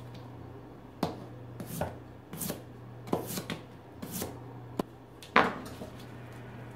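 A knife chops on a cutting board with quick sharp taps.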